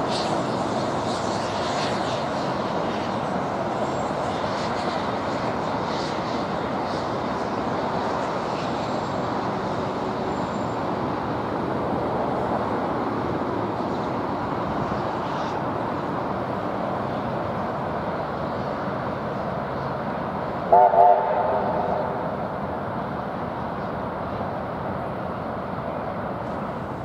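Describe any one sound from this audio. Traffic hums on a nearby road.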